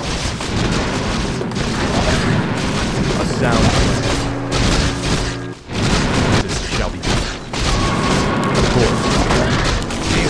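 Magic spells burst and crackle.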